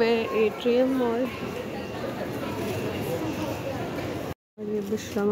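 A crowd murmurs indistinctly in a busy indoor hall.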